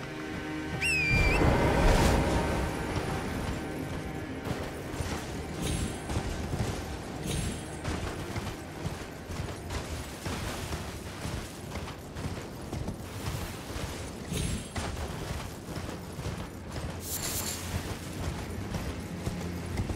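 A horse's hooves thud quickly over snowy ground.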